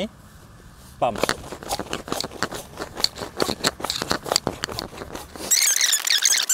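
Nylon fabric crinkles and rustles under a pressing hand.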